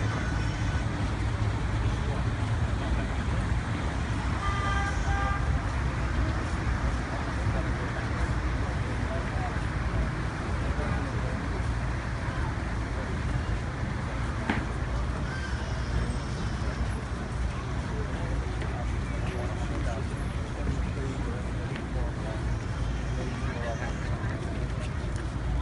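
A large crowd of men murmurs and chants outdoors.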